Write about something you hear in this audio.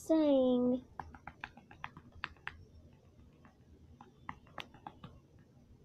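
Buttons on a small handheld device click.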